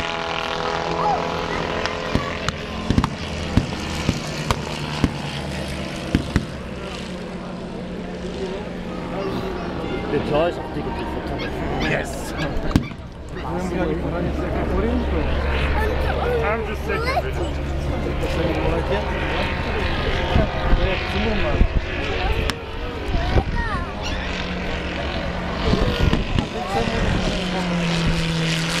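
A small model plane's engine drones steadily overhead, rising and falling in pitch as it turns.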